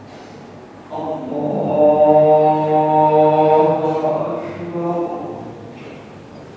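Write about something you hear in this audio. A man chants a long, drawn-out call in an echoing hall.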